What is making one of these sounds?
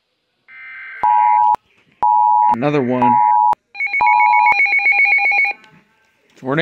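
A weather radio blares a loud, piercing alert tone.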